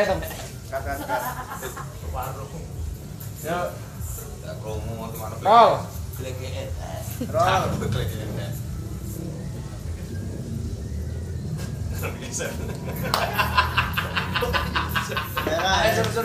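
A second young man answers casually close by.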